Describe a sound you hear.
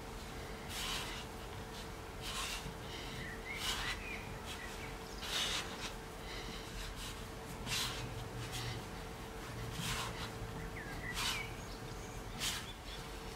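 Hands press and knead crumbly dough on a wooden board, with soft thuds and rustles.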